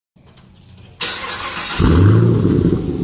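A car engine starts with a loud roar.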